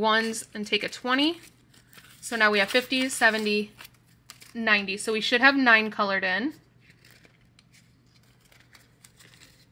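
Paper banknotes rustle and flutter as they are counted by hand.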